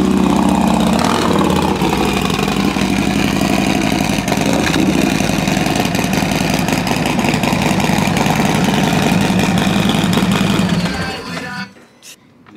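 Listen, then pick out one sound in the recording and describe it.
A motorcycle engine rumbles loudly up close, then cuts off.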